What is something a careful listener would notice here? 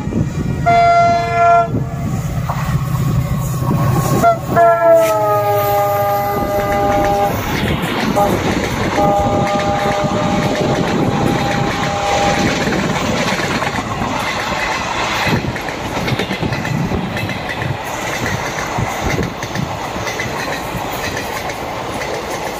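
A passenger train rumbles and clatters past on the rails close by.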